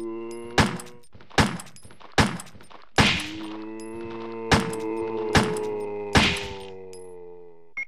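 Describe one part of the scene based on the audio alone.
A handgun fires several shots, each ringing out.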